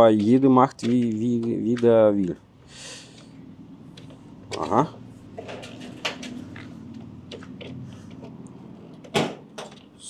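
A plug clicks into a socket.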